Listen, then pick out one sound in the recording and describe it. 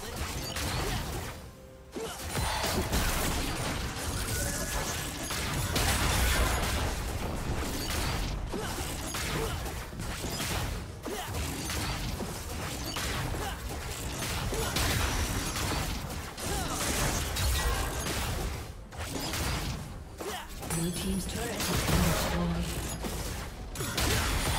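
Rapid magical blasts and zaps crackle in a fast-paced battle.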